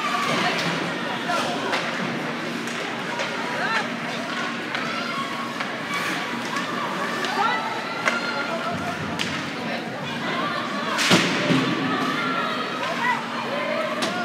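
Spectators chatter and call out in a large echoing rink.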